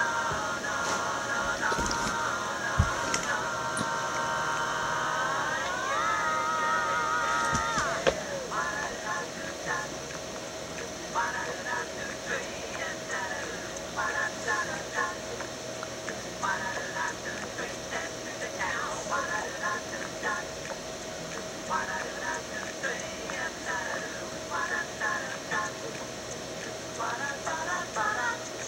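Bouncy music with a tinny melody plays through a television speaker.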